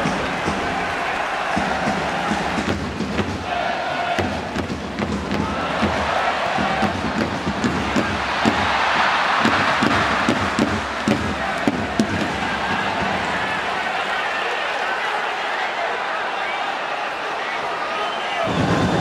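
A large stadium crowd chants and roars steadily, swelling as play nears the goal.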